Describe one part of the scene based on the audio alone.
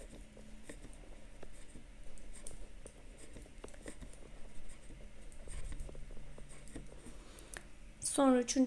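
Metal knitting needles click and tap softly against each other.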